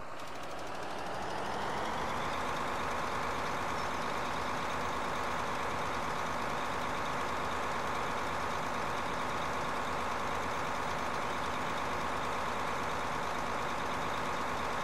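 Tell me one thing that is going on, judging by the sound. A fertiliser spreader whirs and hisses as it scatters granules.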